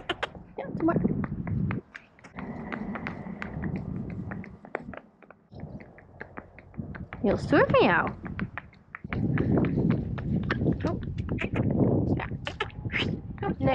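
A pony's hooves clop steadily on a paved road.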